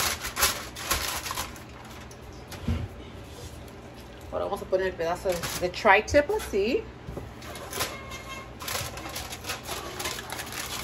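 Aluminium foil crinkles and rustles under a person's hands.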